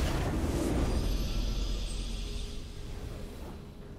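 A triumphant game fanfare plays.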